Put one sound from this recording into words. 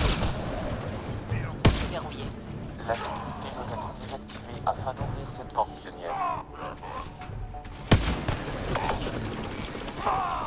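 Laser gunfire zaps and whines in bursts.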